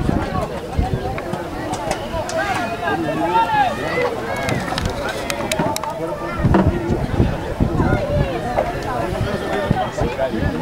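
A crowd murmurs and calls out from the stands.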